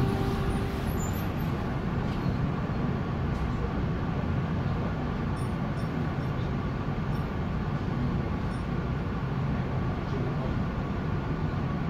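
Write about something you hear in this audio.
A tram's motor hums steadily.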